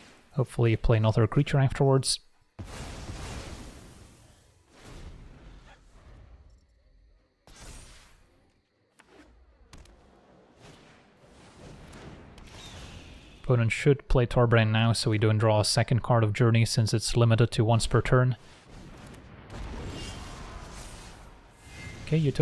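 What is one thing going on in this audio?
Magical whooshes and chimes sound.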